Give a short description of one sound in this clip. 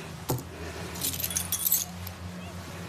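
Keys jingle as a hand picks them up.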